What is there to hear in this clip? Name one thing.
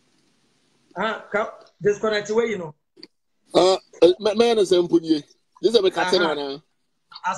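A man laughs and talks with animation.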